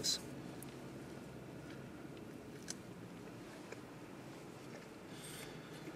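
A man chews food with his mouth full.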